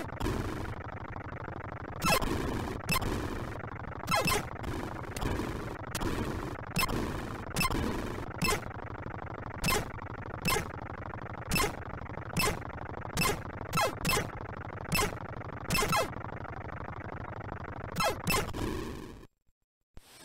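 A retro game's electronic engine hum drones steadily.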